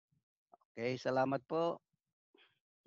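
An elderly man speaks calmly through a headset microphone over an online call.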